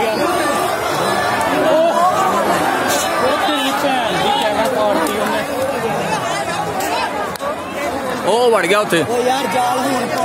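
A large crowd of men shouts and yells outdoors at a distance.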